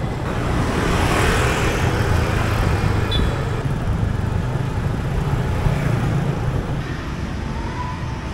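Wind rushes past a moving scooter.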